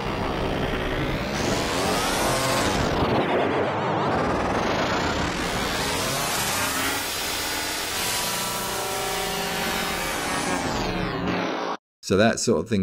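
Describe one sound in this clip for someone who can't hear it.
Electronic music plays with a filter sweeping slowly up and down.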